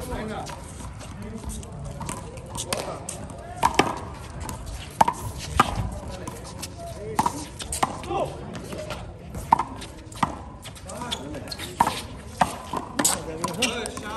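A small rubber ball smacks sharply against a concrete wall and the ground, again and again.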